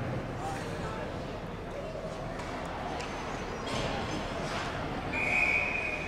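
A crowd of spectators murmurs and calls out nearby.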